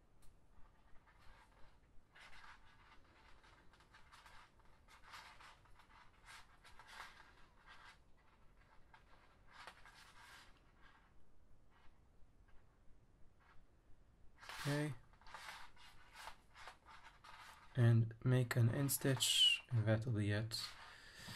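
Plastic cord rustles and crinkles as hands pull it through a weave.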